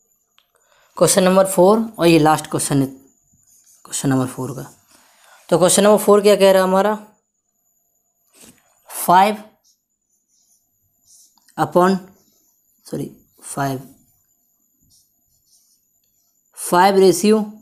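A young man speaks with animation close to a microphone, in short bursts with pauses.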